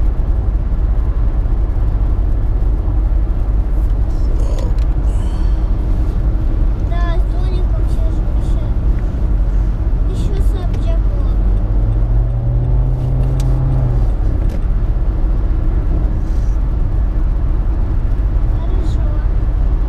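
Tyres roar steadily on a highway.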